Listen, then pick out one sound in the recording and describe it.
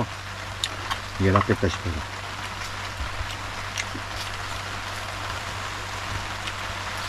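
Metal utensils clink on a plate.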